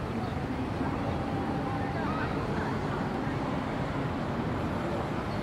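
A busy city street murmurs steadily outdoors.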